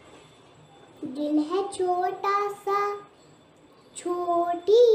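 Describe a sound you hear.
A young girl sings in a high, clear voice close to a microphone.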